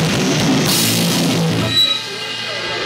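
An electric guitar plays loudly.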